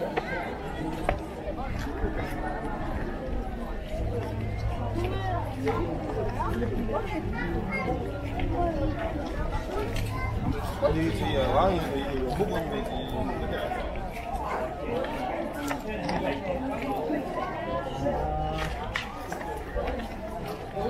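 A crowd of men and women chatters all around, outdoors.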